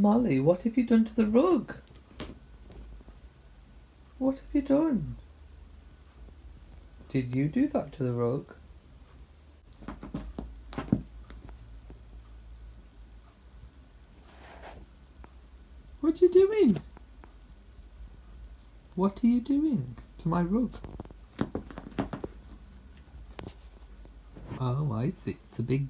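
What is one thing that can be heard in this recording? A cat meows loudly and repeatedly, close by.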